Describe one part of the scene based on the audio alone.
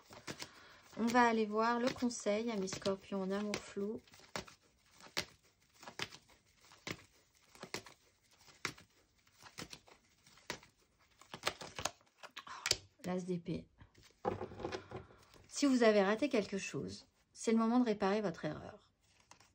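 Playing cards riffle and slap together as they are shuffled by hand.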